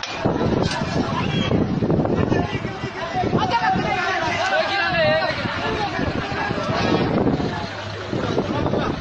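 Men talk loudly and excitedly close by, outdoors.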